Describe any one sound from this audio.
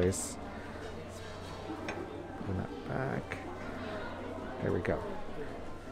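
A ceramic cup clinks as it is set down on a saucer.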